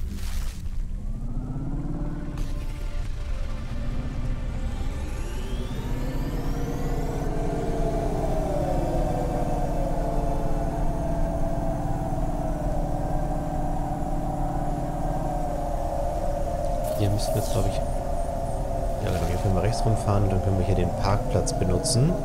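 A flying car's engine hums steadily and rises in pitch as it speeds up.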